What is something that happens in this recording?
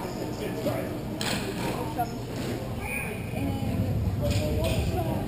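Distant players call out, echoing in a large hall.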